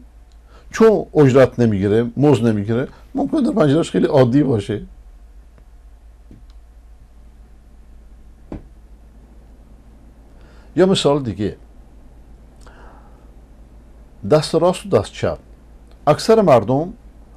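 An elderly man speaks calmly into a close microphone, with pauses.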